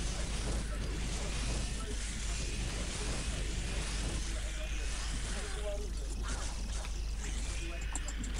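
Swords clash and clang in a fight.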